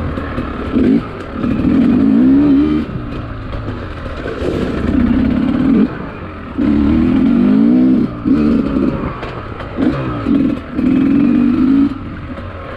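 Tyres crunch over a leafy dirt trail.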